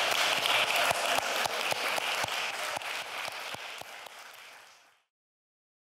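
A woman claps her hands steadily, then fades away.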